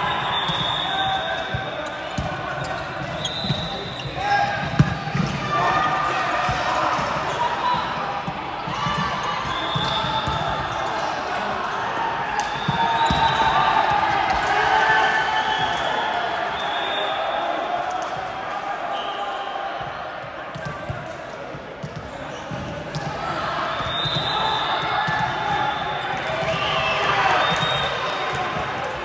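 Sneakers squeak on the court floor.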